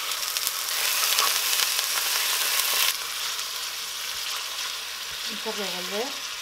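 A spatula scrapes and stirs meat in a metal pot.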